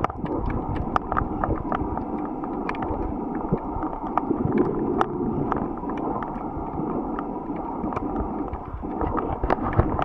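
Water rushes and murmurs in a muffled, steady way underwater.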